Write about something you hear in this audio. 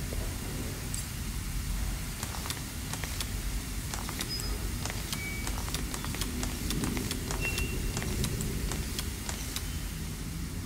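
Metal discs click and clatter as they turn in place.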